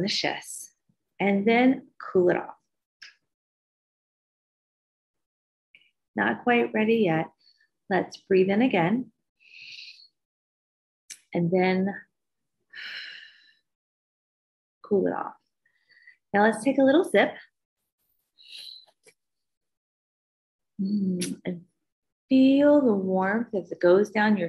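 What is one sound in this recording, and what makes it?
A young woman speaks calmly and warmly into a microphone in short phrases, pausing between them.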